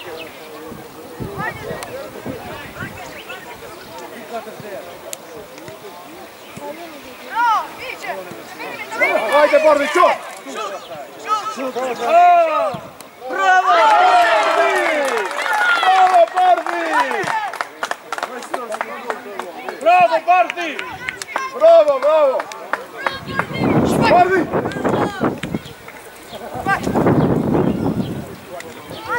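Players shout to each other across an open outdoor pitch.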